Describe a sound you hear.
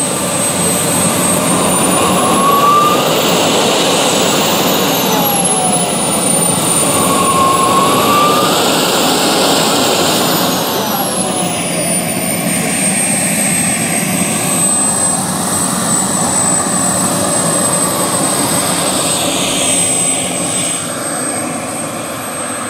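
A jet engine roars steadily as a model jet taxis and rolls away.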